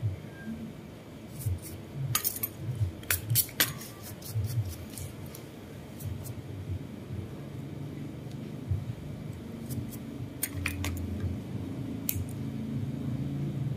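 Nail nippers snip at a toenail.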